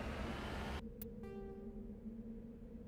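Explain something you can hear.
A menu chimes with a short electronic tone.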